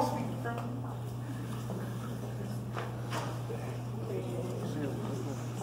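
A broom sweeps across a wooden floor.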